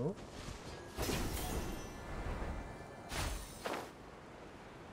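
A rushing whoosh of wind sweeps past during a glide.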